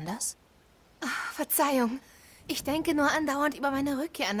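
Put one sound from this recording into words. A young woman answers softly, heard close.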